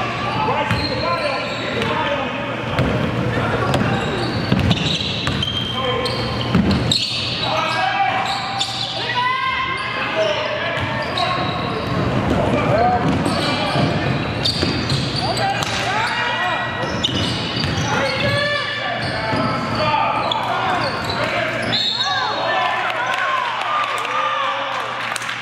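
Spectators chatter and call out in a large echoing gym.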